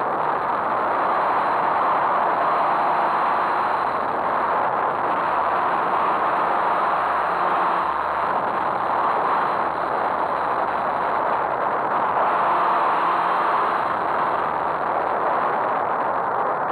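Wind rushes loudly and steadily past in flight.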